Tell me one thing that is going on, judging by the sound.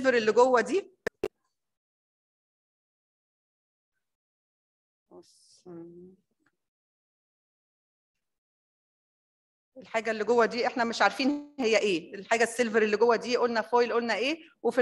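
A woman speaks calmly into a microphone, lecturing.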